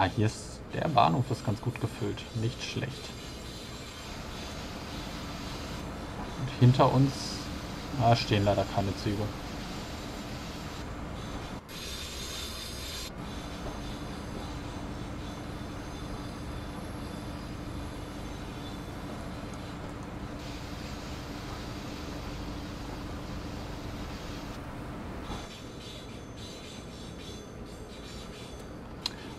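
An electric train hums steadily as it rolls along the tracks.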